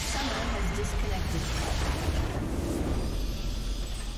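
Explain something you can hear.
Magic spell effects crackle and boom loudly.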